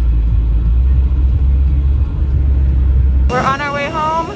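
A car engine hums and tyres roll on a road.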